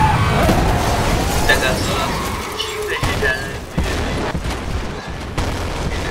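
A car crashes with a loud metal smash.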